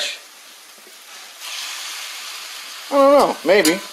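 A metal fork scrapes and stirs in a pan.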